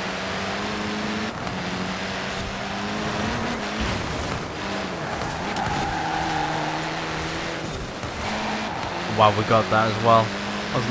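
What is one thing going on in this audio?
A racing car engine roars loudly, its pitch rising and falling with gear changes.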